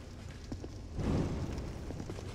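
A torch bursts into flame with a whoosh.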